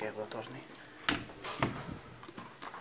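A door latch clicks as a door is pulled on its handle.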